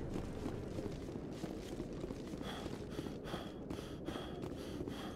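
Footsteps thud quickly on a hard metal floor.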